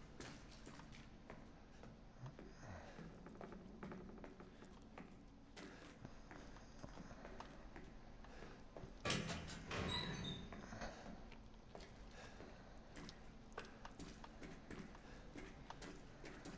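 A young man talks quietly into a close microphone.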